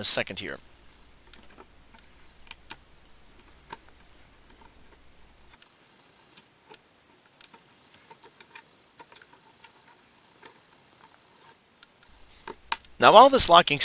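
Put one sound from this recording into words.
Small plastic track pieces click and tick softly as they are pressed together.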